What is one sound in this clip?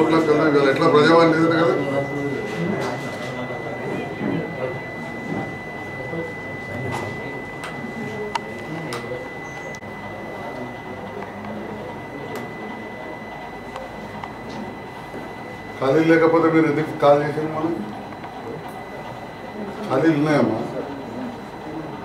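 A man speaks on a phone nearby, in short bursts.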